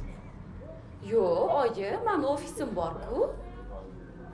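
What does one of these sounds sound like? A young woman speaks with animation into a phone close by.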